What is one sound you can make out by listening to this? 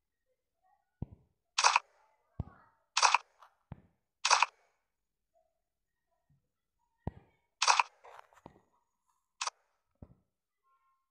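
Short menu clicks tap several times.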